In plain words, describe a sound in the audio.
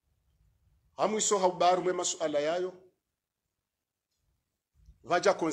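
A man speaks clearly and firmly into a nearby microphone.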